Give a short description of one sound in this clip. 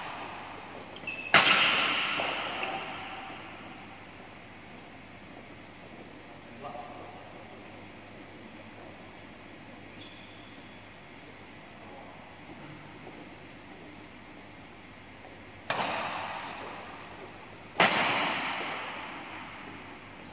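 Sports shoes squeak briefly on a court floor.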